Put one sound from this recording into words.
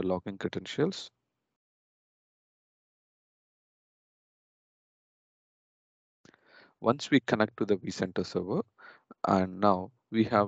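A young man speaks calmly and close to a microphone, as if explaining.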